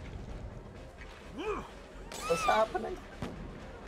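A glass bottle smashes and shatters.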